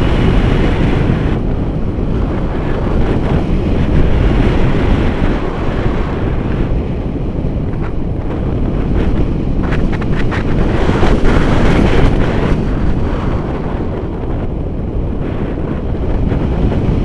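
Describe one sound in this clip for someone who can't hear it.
Strong wind rushes and buffets loudly outdoors.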